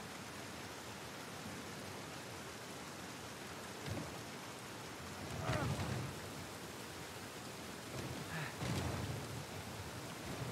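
Water trickles steadily in a stream.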